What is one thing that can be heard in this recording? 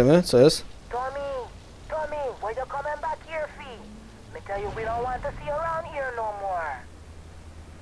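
A man speaks loudly and tauntingly.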